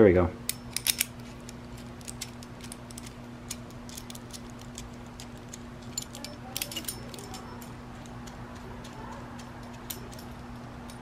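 Metal parts click and clink as hands fit them together.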